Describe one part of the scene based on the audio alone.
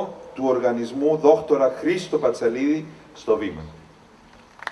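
A man reads aloud in a clear, measured voice on a microphone in an echoing hall.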